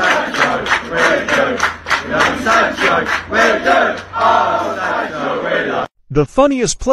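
A crowd of fans sings and chants loudly in an open stadium.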